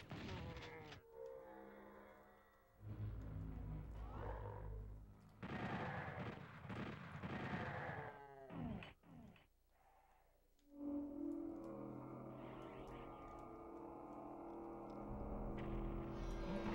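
Video game music plays with steady low tones.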